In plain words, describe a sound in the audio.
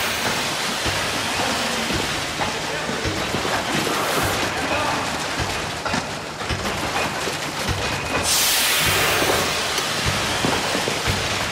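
Metal pails and pipes clank and knock.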